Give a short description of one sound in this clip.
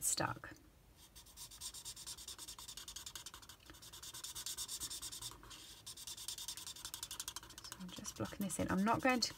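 A marker squeaks and scratches softly on paper.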